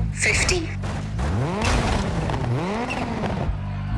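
A rally car crashes and tumbles over with heavy thuds.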